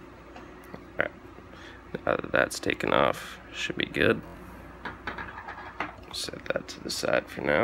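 A small metal part clicks and rattles as gloved hands handle it.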